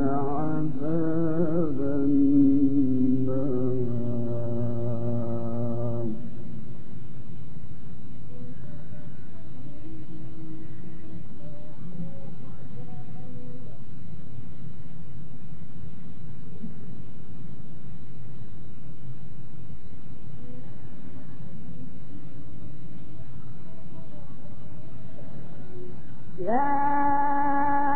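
A middle-aged man chants in a long, drawn-out melodic voice, heard through an old recording.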